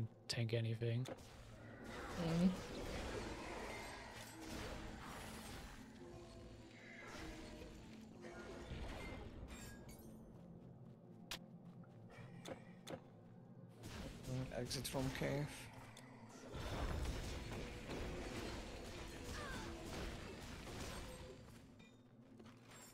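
Game combat sounds clash and crackle with magic blasts.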